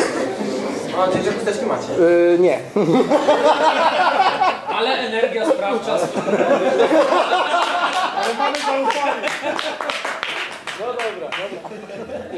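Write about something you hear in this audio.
A man laughs heartily nearby.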